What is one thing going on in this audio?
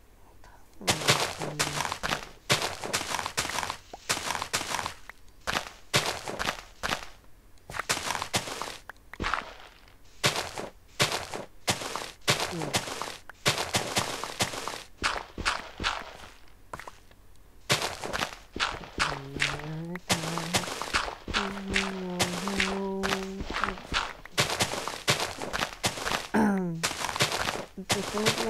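Dirt crunches in quick, repeated scrapes as blocks are dug away.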